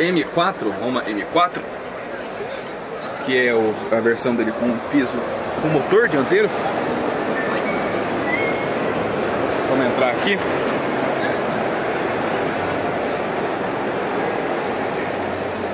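A crowd of people chatters in a large, busy hall.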